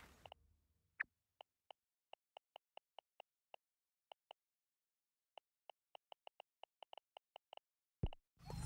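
Short soft blips click one after another.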